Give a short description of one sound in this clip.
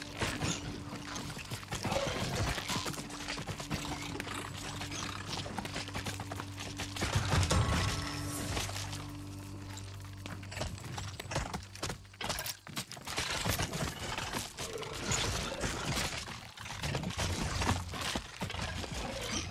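Swarms of giant ants clatter and skitter as they fight.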